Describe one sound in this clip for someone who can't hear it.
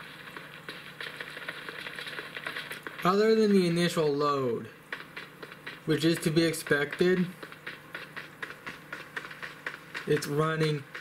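Game gunfire crackles quietly through a small phone speaker.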